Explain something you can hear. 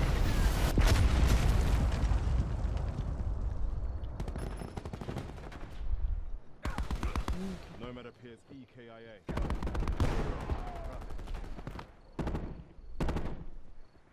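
A rifle fires in rapid bursts of loud shots.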